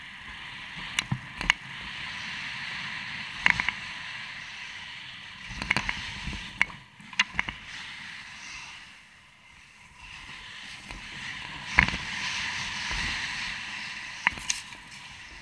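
A mountain bike rattles over bumps on a dirt trail.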